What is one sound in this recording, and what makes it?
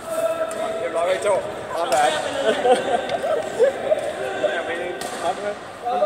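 Young men laugh in a large echoing hall.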